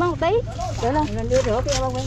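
Wet fish slap softly as a hand sorts them.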